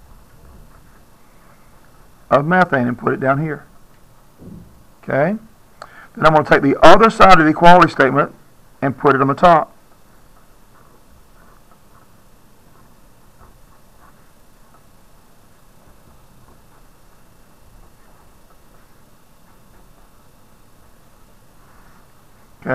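A felt-tip pen squeaks and scratches on paper.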